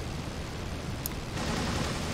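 Machine guns fire a short burst.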